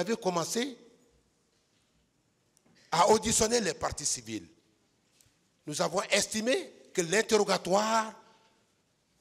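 A man speaks forcefully into a microphone in short bursts, with pauses between phrases.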